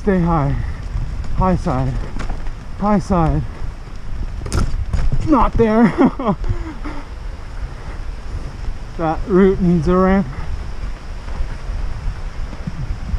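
Bicycle tyres roll and crunch over a bumpy dirt trail.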